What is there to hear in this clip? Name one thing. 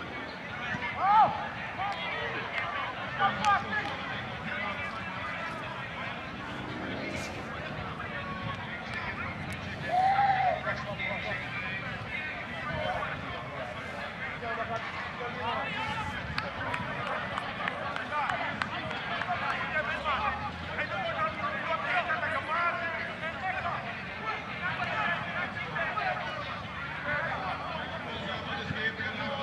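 Players shout to each other on the field.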